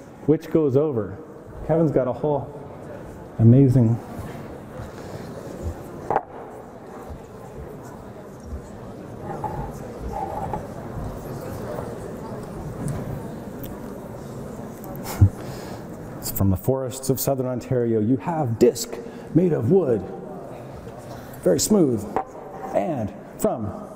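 A wooden wheel rolls down a wooden ramp.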